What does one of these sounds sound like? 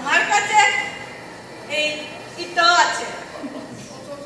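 A woman speaks loudly into a microphone with animation in a large echoing hall.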